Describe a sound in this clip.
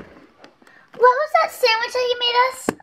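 A toy doll speaks in a small electronic child's voice.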